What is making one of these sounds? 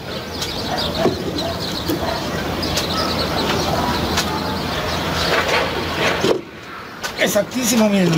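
A wooden board knocks against a metal frame.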